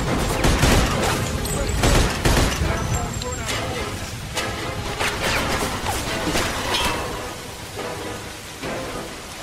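Gunshots ring out repeatedly, echoing.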